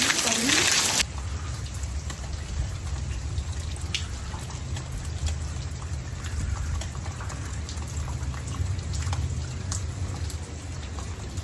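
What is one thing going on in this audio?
Scattered raindrops tap and patter nearby.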